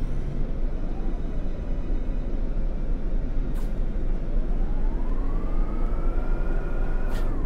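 A rattling vehicle engine rumbles loudly, its whine rising and falling.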